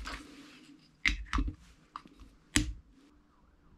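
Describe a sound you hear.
A plastic cap clicks off a gas canister.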